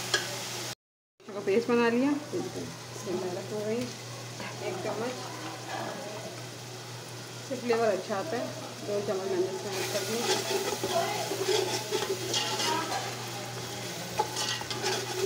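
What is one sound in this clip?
Oil sizzles softly in a pan.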